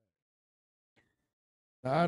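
Billiard balls click together faintly.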